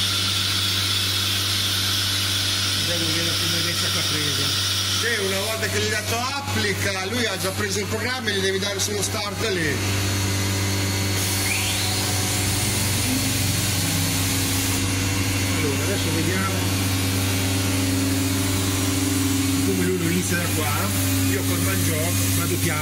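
A large machine hums and whirs steadily.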